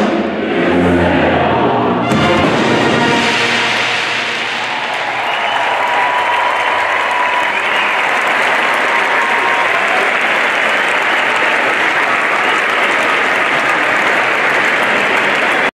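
A marching band plays loud brass and drums.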